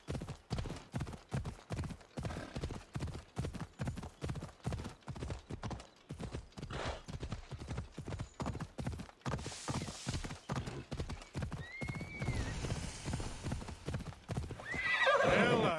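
Horse hooves gallop quickly over the ground in a steady rhythm.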